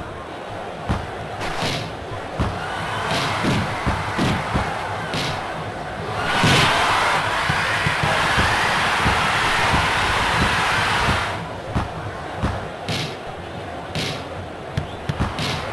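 A stadium crowd roars, swelling loudly during an attack on goal.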